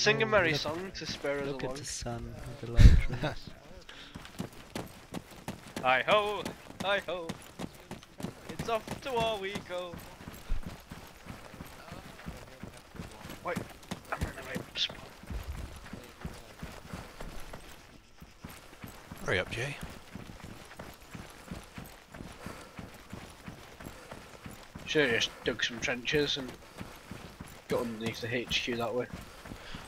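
Footsteps crunch through dry grass as a soldier runs.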